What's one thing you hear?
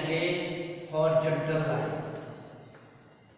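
A man speaks calmly and clearly nearby.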